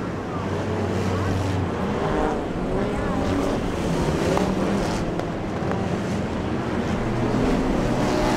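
A crowd talks and murmurs nearby.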